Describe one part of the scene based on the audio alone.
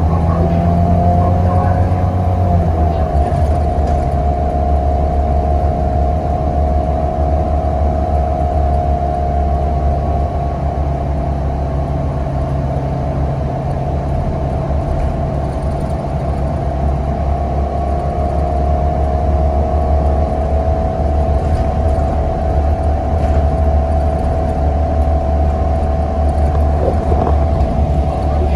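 A bus engine hums and whines steadily while the bus drives along.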